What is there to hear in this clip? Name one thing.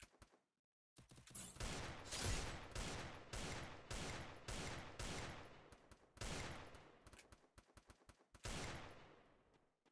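Gunshots ring out in loud, rapid bursts.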